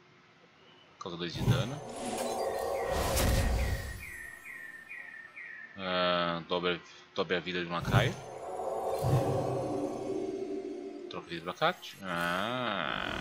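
A man talks into a microphone close by, with animation.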